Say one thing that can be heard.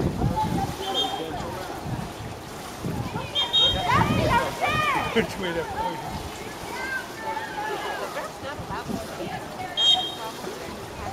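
A referee blows short, sharp whistle blasts.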